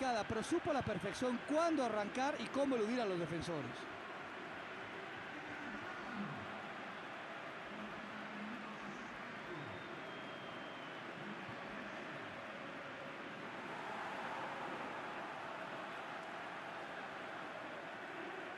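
A large stadium crowd roars and murmurs steadily, swelling briefly.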